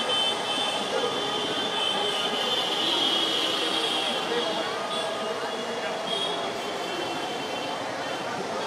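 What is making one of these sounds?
Motorcycle engines rumble along a street.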